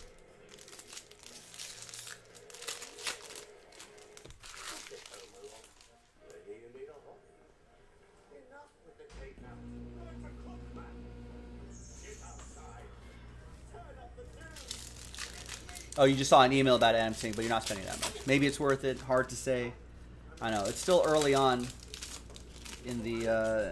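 A foil card pack crinkles as hands tear it open.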